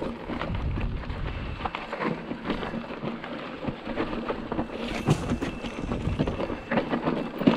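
A bicycle frame and chain clatter over bumps.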